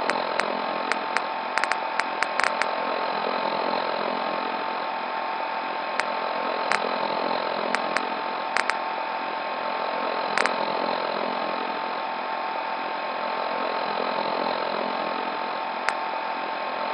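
Short electronic menu clicks tick as selections change.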